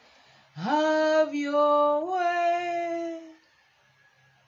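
A woman sings a long, high held note with strong feeling, close by.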